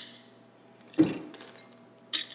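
Glass clinks against glass.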